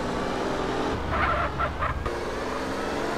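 Tyres screech as a car skids around a corner.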